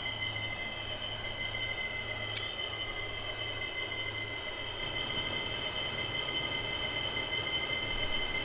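An electric train hums and whines steadily as it rolls along the track.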